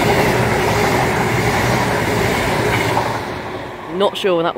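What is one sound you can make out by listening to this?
A train rumbles past loudly, close by.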